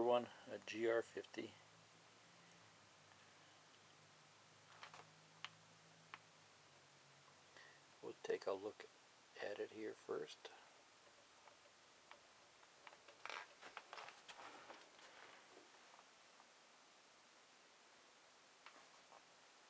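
Hands handle and tap a hard plastic unit.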